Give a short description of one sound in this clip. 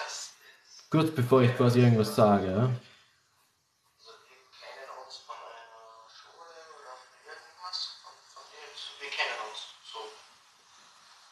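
A young man speaks close to a phone's microphone.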